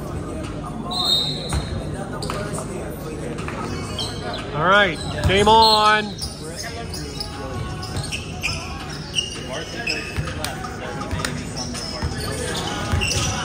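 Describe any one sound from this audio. Basketball shoes squeak sharply on a wooden court.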